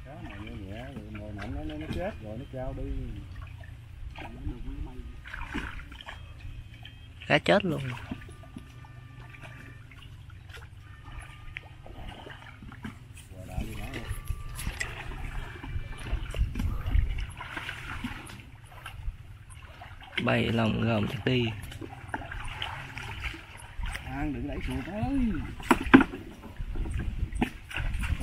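Water splashes as people wade through a shallow channel.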